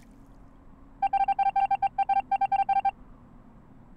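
Rapid electronic beeps chatter as game text types out.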